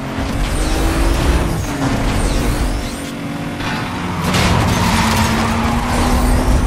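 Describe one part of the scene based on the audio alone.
A race car engine roars at high speed, shifting pitch as it changes gear.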